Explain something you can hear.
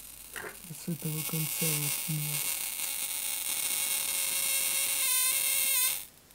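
An electric arc hisses and buzzes steadily.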